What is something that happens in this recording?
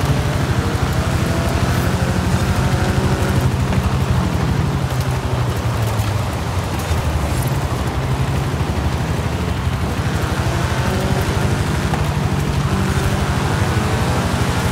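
A racing engine roars loudly, rising and falling in pitch as it speeds up and slows.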